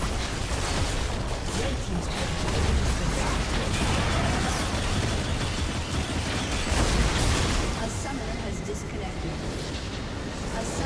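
Magic spells crackle and whoosh in a busy game battle.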